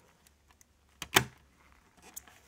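A plastic lid snaps shut.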